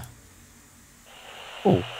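A lighter flame hisses softly.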